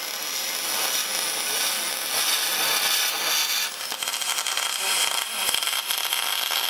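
A welding torch crackles and hisses steadily as it welds metal.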